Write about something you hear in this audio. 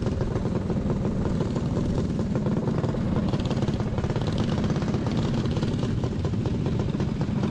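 A kart engine roars loudly up close at full throttle.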